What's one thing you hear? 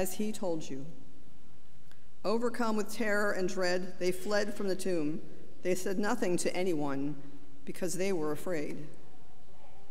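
A woman reads out calmly into a microphone in a large echoing room.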